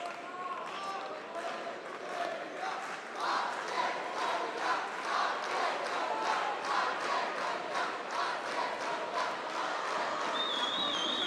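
A crowd claps in a steady rhythm in a large echoing hall.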